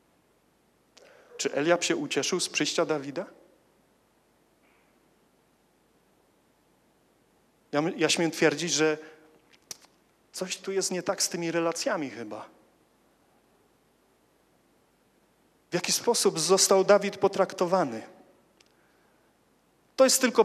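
A young man speaks calmly into a microphone, in short phrases with long pauses.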